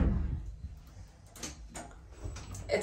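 A finger presses a lift button with a soft click.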